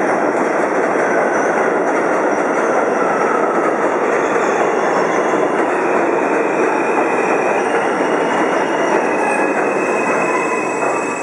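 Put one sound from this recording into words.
Subway train brakes squeal as the train slows.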